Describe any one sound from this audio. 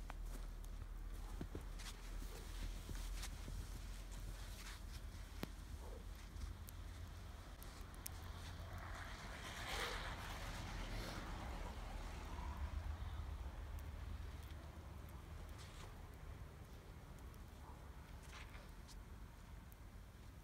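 A bundle of wooden poles scrapes and drags over snow.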